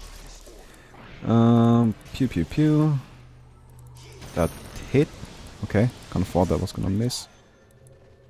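Magic spell effects whoosh and crackle in a game.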